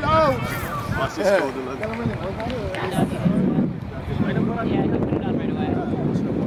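Children shout and call out across an open playing field.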